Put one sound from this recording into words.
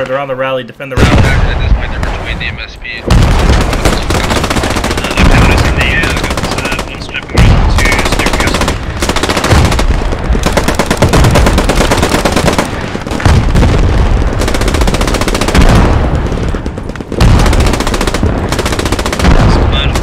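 Loud explosions boom again and again.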